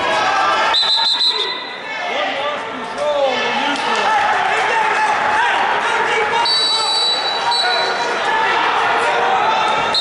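Shoes squeak on a wrestling mat.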